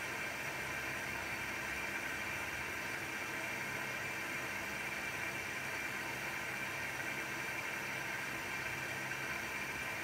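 A washing machine hums and whirs steadily as its drum turns.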